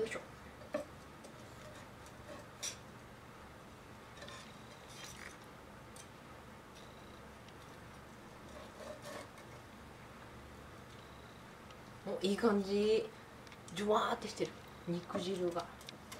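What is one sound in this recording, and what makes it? Metal tongs click as food is lifted onto a plate.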